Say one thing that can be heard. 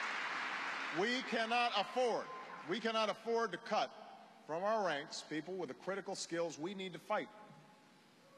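A man speaks with emphasis through a microphone in a large hall.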